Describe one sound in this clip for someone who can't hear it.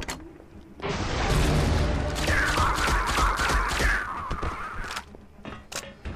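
A gun fires several shots.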